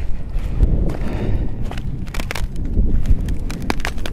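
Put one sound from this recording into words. Footsteps crunch on ice and wet ground.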